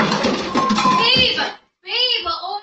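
A woman cries out loudly.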